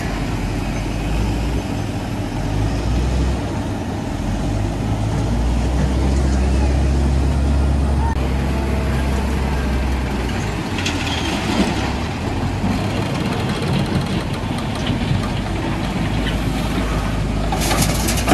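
An excavator's engine roars as it works.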